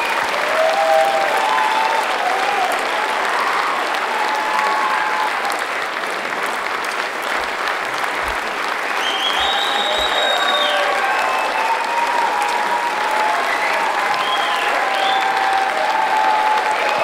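Audience members whistle and cheer shrilly.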